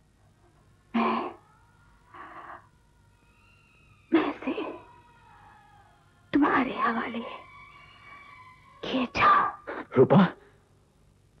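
A man speaks softly, close by.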